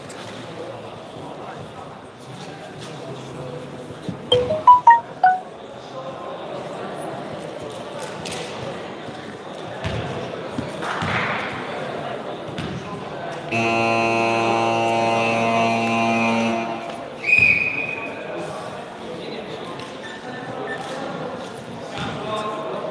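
Spectators chatter in a large echoing hall.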